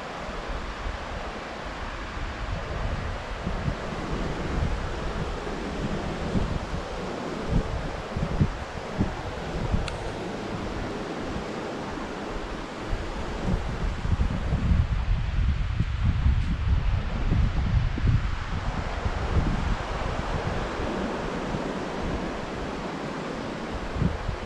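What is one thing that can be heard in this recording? Wind blows across a microphone outdoors.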